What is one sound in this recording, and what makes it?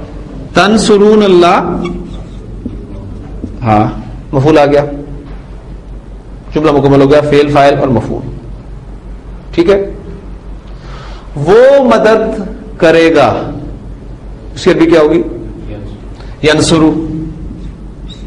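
An adult man speaks calmly and clearly in bursts, with pauses between phrases.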